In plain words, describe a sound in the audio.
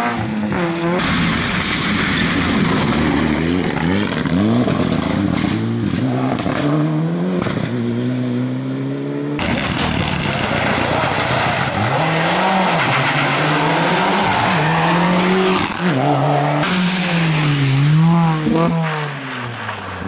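Tyres crunch and spray over gravel and wet road.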